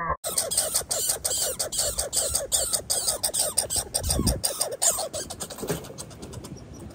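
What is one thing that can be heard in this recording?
A squirrel chatters rapidly and sharply close by.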